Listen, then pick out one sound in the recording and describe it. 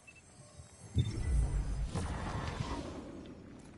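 A shimmering magical whoosh swells up.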